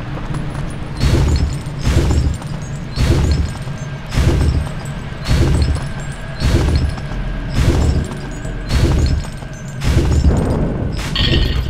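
A heavy stone block scrapes and thuds along the floor in repeated pulls.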